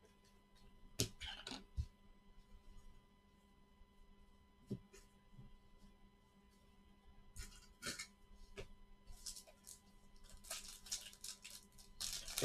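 Stiff paper cards rustle and shuffle in gloved hands.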